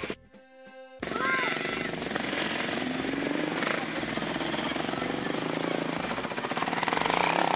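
Motorbike engines idle and rev nearby.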